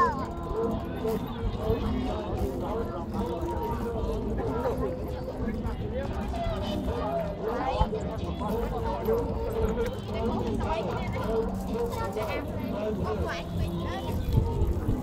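Young men and women talk casually nearby, outdoors.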